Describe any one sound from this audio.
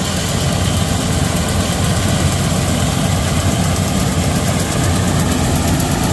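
A combine harvester's engine roars loudly and steadily nearby.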